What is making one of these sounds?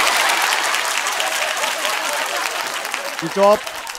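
A man laughs loudly and excitedly close by.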